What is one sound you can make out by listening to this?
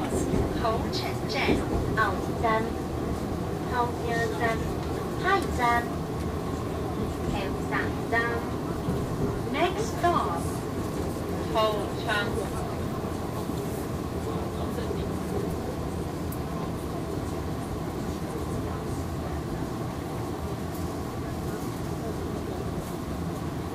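A vehicle engine rumbles steadily while driving.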